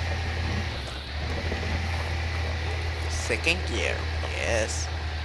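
A truck engine rumbles low and steady as the vehicle crawls along a muddy track.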